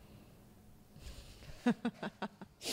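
A woman laughs softly nearby.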